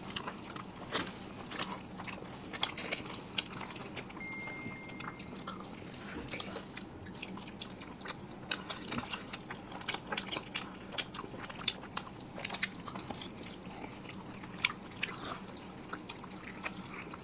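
Wet, juicy chewing and slurping sounds come close to a microphone.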